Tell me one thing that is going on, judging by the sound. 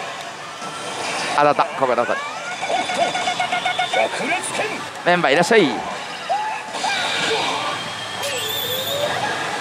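A slot machine plays loud electronic music and sound effects.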